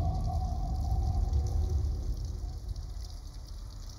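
Rain patters steadily on wet pavement.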